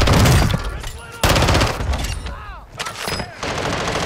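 A rifle fires in a video game.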